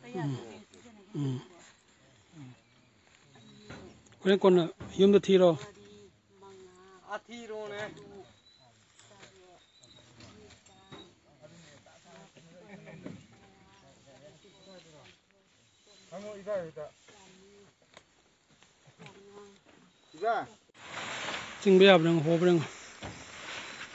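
Plastic sacks rustle and thump as they are shifted.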